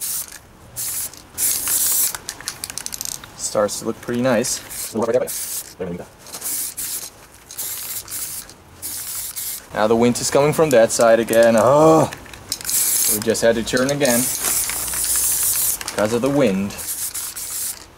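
An aerosol spray can hisses in short and long bursts.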